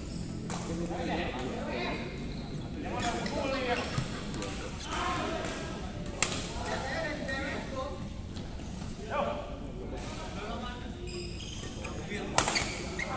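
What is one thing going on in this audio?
Men call out and talk in a large echoing hall.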